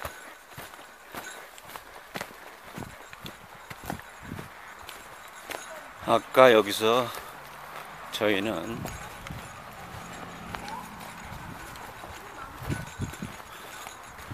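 Footsteps swish and thud through grass.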